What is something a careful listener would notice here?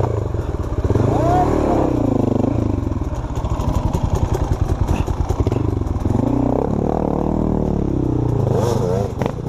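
A dirt bike engine revs and sputters close by.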